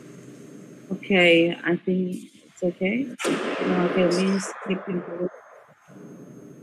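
A woman speaks briefly and calmly nearby, in a room with some echo.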